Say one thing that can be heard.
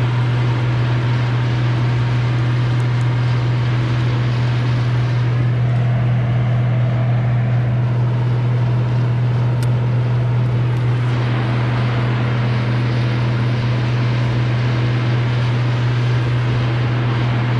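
A chainsaw engine idles steadily close by.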